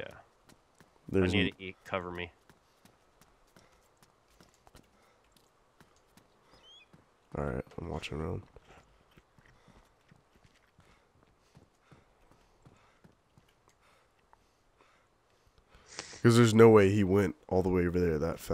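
Boots thud on concrete in steady footsteps.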